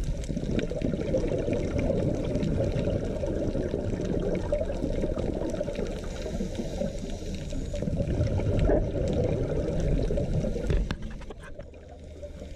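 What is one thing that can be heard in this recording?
Water rumbles and swirls in a low, muffled underwater wash.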